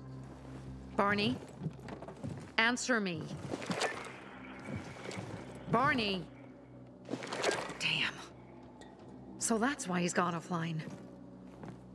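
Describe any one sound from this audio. A young woman calls out urgently into a walkie-talkie, heard close.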